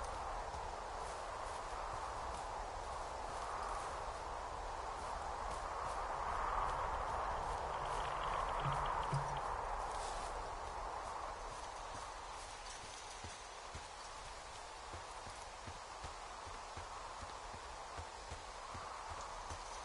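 Footsteps crunch on dry ground and leaves.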